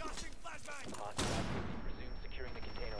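A loud blast bursts and rings.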